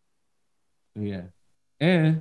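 A man speaks and laughs over an online call.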